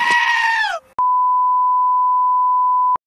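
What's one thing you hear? A steady high test tone beeps without a break.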